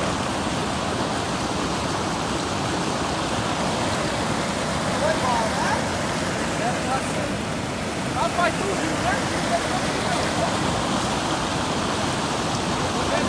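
Rushing water roars steadily over a weir.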